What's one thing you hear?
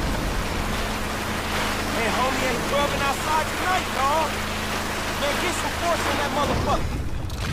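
A truck engine idles steadily.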